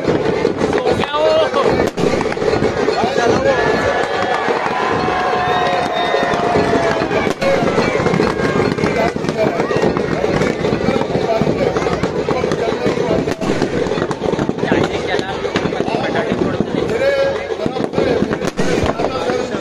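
Firecrackers pop and bang.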